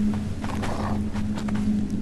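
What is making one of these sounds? A wolf growls and snarls.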